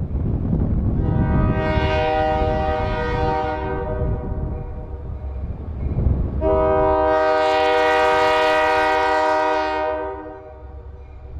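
A train horn blows loudly in two long blasts.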